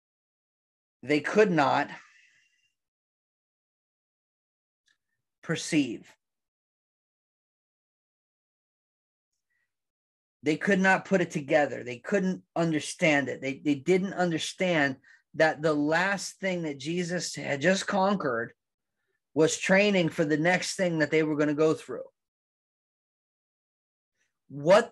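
A man speaks calmly and with animation into a close microphone, pausing now and then.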